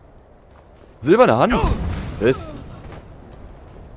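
A burst of flame whooshes and crackles.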